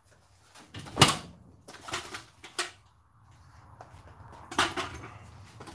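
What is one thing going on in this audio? A motorbike clunks and knocks as it is handled.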